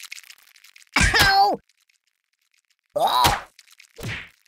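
Loud cartoon thuds and crunches hit.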